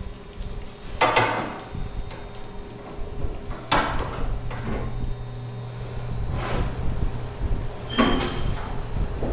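A wrench clicks and scrapes against a metal pipe fitting.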